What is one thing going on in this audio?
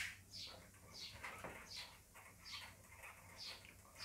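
A cloth rubs against a whiteboard.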